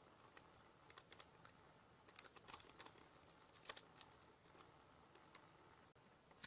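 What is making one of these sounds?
A plastic packet crinkles as powder is shaken out.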